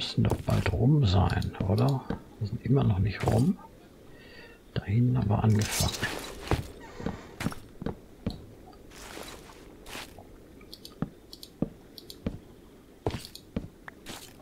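Wooden blocks knock and crack as they are broken and placed.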